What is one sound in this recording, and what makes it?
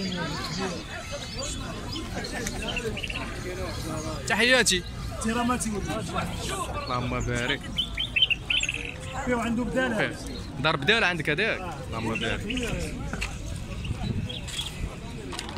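Caged songbirds chirp and trill close by.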